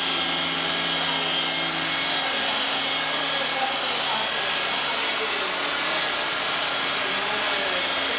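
An electric polisher whirs steadily against a car door.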